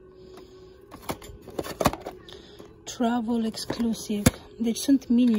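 Hard plastic packaging clicks and taps as a hand handles it.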